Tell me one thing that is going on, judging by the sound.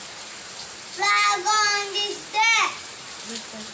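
A young boy speaks loudly and clearly close to a microphone.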